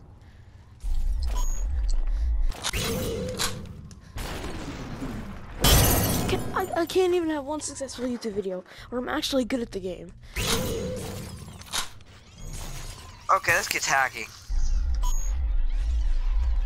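Glass-like bodies shatter into pieces.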